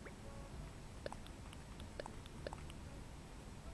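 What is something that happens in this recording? Soft game menu blips tick as a cursor moves between items.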